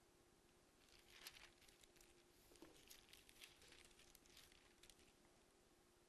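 Paper pages rustle softly.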